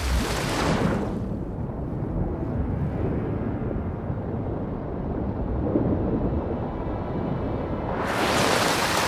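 Muffled underwater rumbling surrounds the listener.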